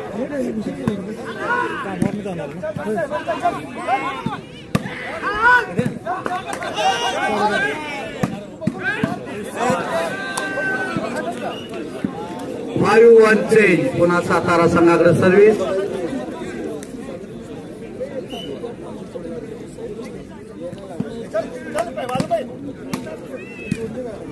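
A ball is struck hard with a hand, with sharp slaps.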